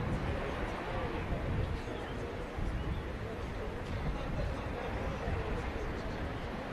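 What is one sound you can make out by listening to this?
A crowd chatters at a distance outdoors.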